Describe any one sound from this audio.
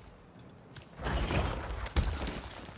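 A body thuds and scrapes on stony ground.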